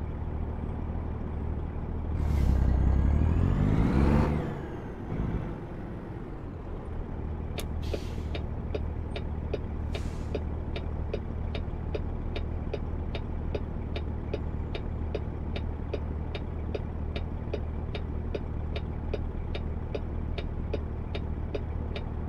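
A truck engine rumbles steadily at low pitch.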